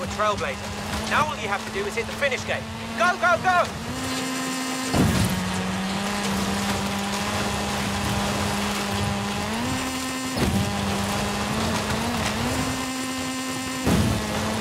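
A rally car engine roars at high revs, with sharp drops in pitch at each gear change.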